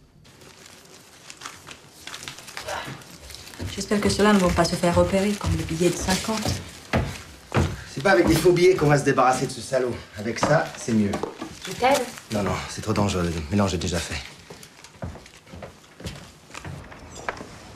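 Paper banknotes rustle as they are counted.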